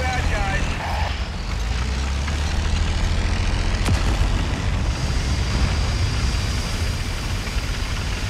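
A tank engine rumbles deeply.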